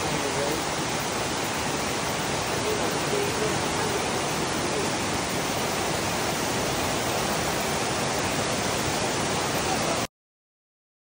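Heavy rain pours steadily onto leaves outdoors.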